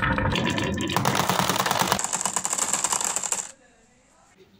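Glass marbles clink as they drop into a plastic toy truck.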